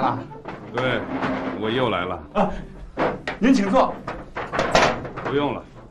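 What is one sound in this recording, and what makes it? A man speaks loudly to a group nearby.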